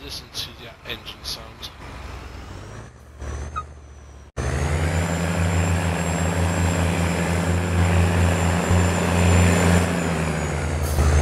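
A heavy tractor engine rumbles steadily, growing louder as it drives off.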